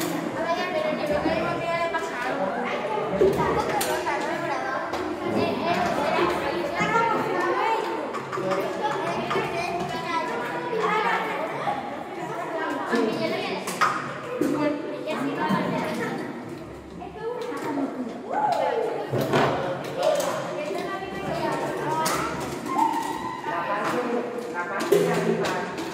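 Children and adults chatter all around in an echoing room.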